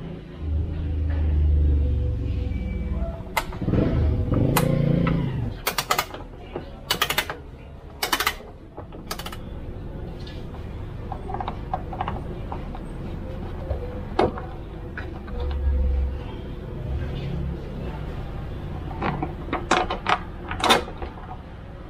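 Small metal clips click as hands handle them.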